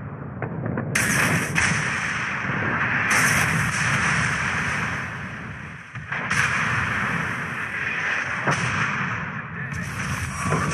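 Large guns fire in heavy booms.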